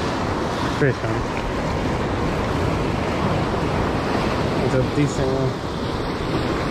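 Waves wash and break against rocks close by.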